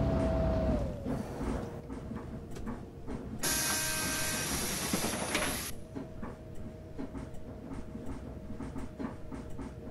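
A bus engine idles steadily.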